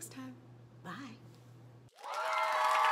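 A young woman speaks cheerfully and close.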